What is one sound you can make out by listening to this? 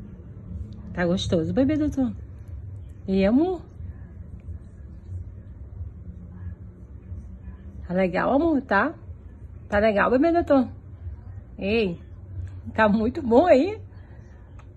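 A young child makes short high-pitched sounds close by.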